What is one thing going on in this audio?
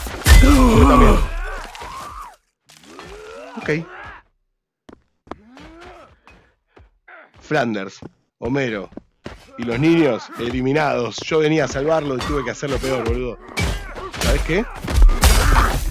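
Blades slash into bodies with wet, heavy thuds.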